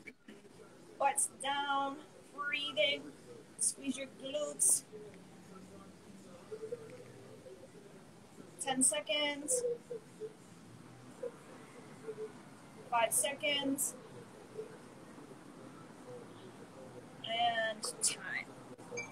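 A young woman speaks in short bursts through an online call.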